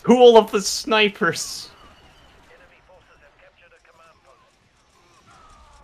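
Blaster guns fire in short bursts.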